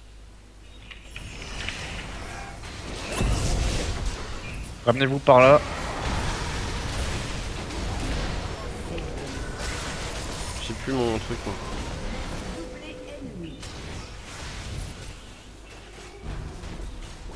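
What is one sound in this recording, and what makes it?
Magic spells blast and crackle in a fast fight.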